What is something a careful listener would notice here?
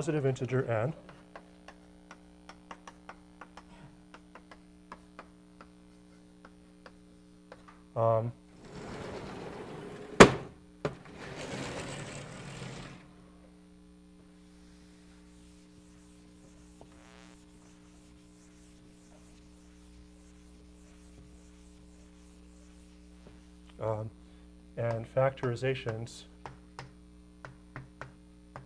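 Chalk taps and clicks on a blackboard.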